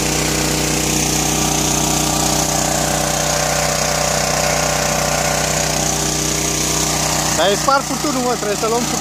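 A water pump engine hums steadily.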